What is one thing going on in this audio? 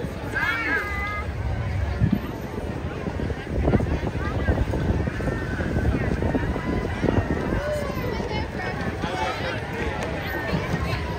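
Children shout and cheer nearby.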